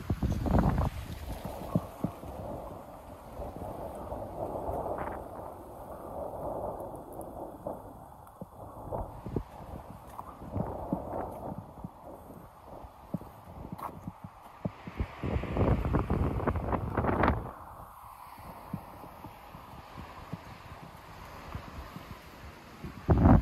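Wind rumbles outdoors, gusting now and then.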